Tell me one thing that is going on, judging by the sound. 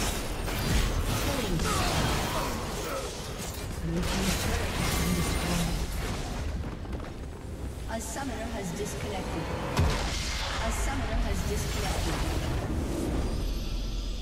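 Game spells and attacks crackle and blast in quick bursts.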